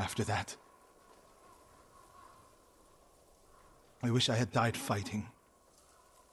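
A man speaks quietly and sadly, close by.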